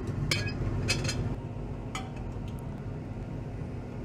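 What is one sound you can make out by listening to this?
A stopper is pressed onto a glass flask with a light knock.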